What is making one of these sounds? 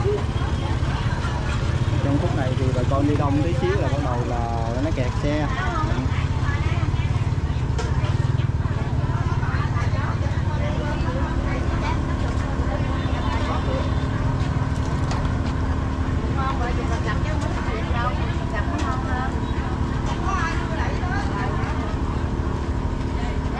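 Many voices chatter in a busy outdoor market.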